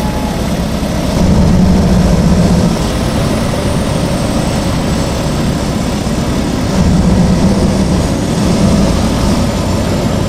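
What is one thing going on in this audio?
Tyres crunch on gravel.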